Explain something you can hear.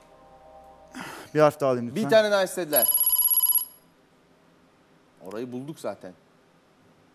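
A man speaks into a microphone, pausing between phrases.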